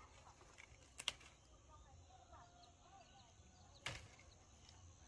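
A gourd stem snaps sharply as the fruit is picked.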